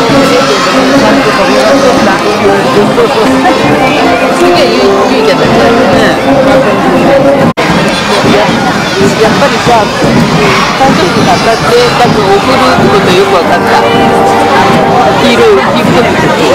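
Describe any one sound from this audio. A large crowd of children and adults chatters and cheers outdoors.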